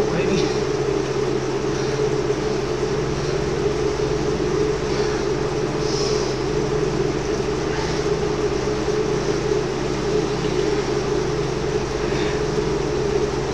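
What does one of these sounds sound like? An indoor bike trainer whirs steadily.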